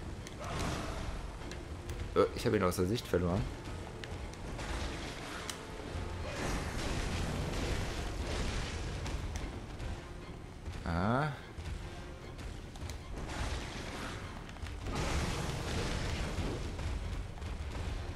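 Flames whoosh and crackle.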